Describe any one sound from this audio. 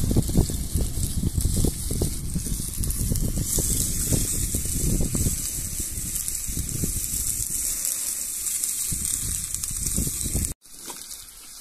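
A spoon scrapes and stirs food in a metal pan.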